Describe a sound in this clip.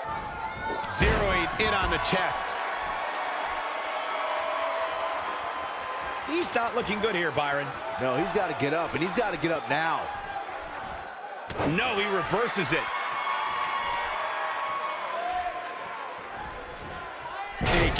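Heavy bodies slam onto a ring mat with loud thuds.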